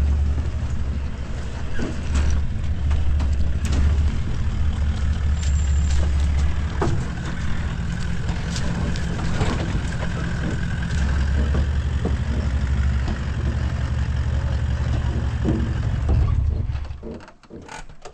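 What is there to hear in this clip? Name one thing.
A truck engine rumbles as it drives slowly over a dirt track.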